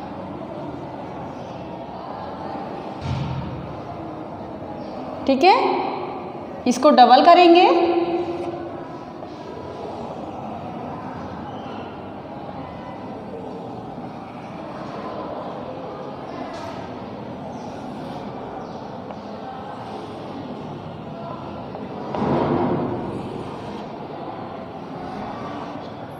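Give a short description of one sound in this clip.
Chalk scratches and taps on a blackboard.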